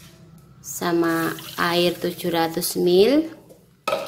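Water pours into a pan.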